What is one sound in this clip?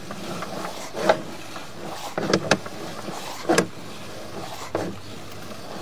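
A crawler bumps and scrapes along inside a pipe, with a hollow echo.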